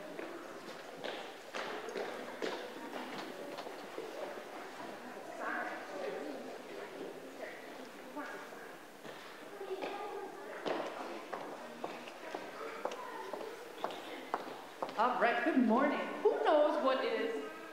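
Young children chatter and call out.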